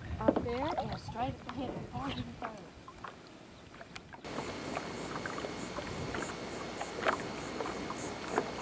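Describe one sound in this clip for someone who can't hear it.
Water laps gently against a board.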